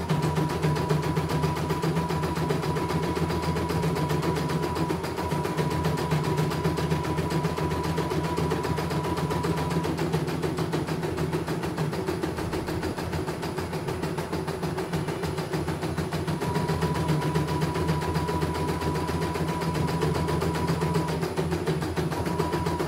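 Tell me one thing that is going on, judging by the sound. An embroidery machine stitches with a fast, steady whirring hum.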